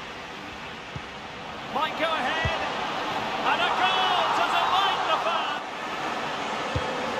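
A football is kicked with a dull thud.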